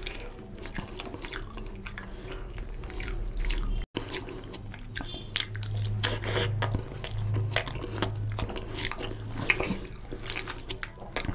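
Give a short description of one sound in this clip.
Fingers squelch and mix wet rice and curry.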